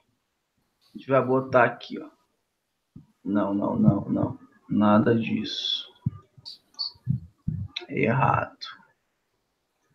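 A young man speaks calmly into a microphone.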